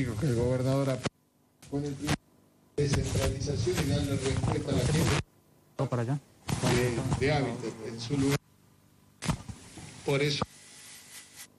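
An elderly man speaks calmly through a microphone and loudspeakers outdoors, pausing between phrases.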